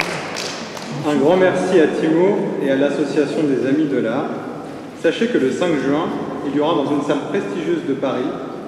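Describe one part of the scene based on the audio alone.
A young man speaks calmly into a microphone in a reverberant hall.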